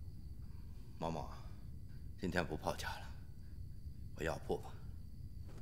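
A man speaks in a relaxed, amused voice nearby.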